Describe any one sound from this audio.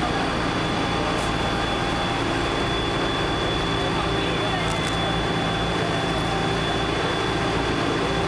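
A fire engine idles with a steady low rumble.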